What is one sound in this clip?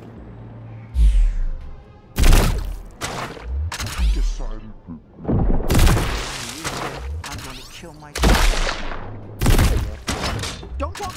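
A weapon swings with loud whooshing blows.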